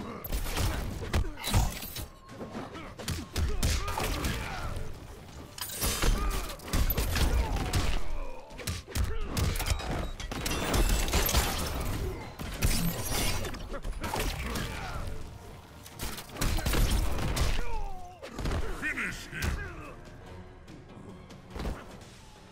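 Heavy punches and kicks land with loud thuds and cracks.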